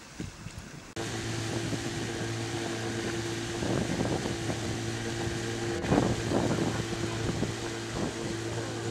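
Water rushes and churns behind a boat.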